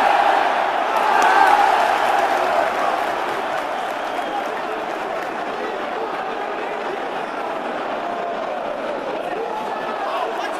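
A large stadium crowd cheers and chants loudly, outdoors.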